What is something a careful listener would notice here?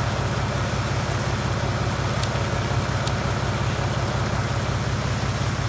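A pressure washer sprays water with a steady hiss.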